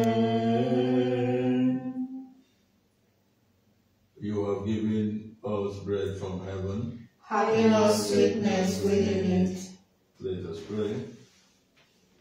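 A man prays aloud in a low, steady voice close by.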